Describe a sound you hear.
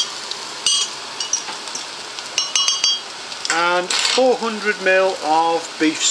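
Food sizzles quietly in a pot.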